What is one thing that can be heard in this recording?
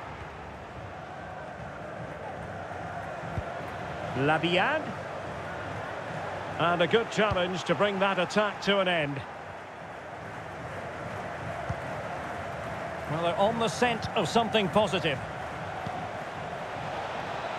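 A stadium crowd murmurs and roars steadily in the distance.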